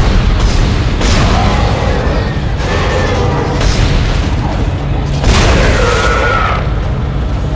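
A creature screeches loudly.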